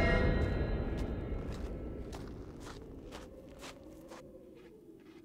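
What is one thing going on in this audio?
A man's footsteps crunch on dry, stony ground.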